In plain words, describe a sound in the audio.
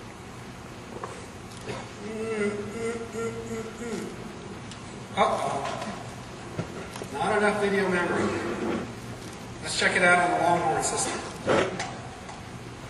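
A man speaks with animation through loudspeakers in a large echoing hall.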